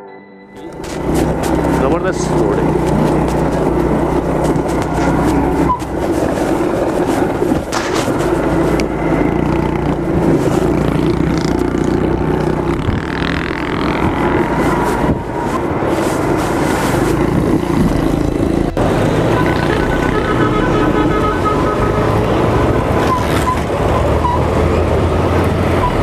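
A motorbike engine hums steadily close by.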